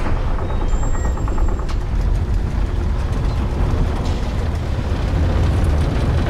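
A heavy stone mechanism grinds and rumbles deeply.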